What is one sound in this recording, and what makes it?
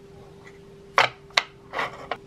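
A tape measure clatters and clicks sharply close by.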